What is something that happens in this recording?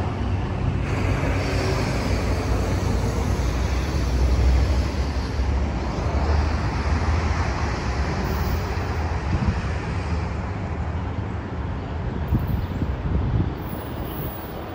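A train rumbles along the tracks as it pulls away and slowly fades.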